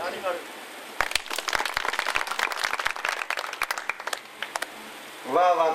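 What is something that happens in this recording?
An audience claps in a burst of applause.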